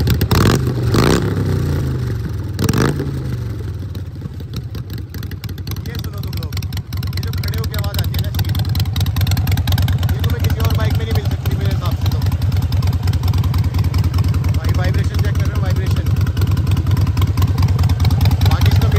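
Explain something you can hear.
A motorcycle engine idles with a deep, rapid throbbing.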